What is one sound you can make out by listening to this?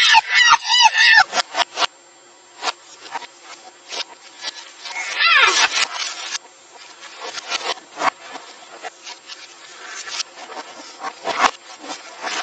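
Fingers type quickly on a computer keyboard, with clicking keys.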